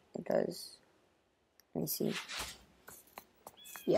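A video game plays a short whooshing effect as a card is played.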